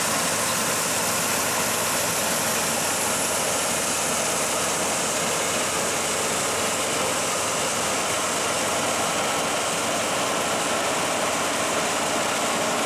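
A combine harvester engine roars steadily close by.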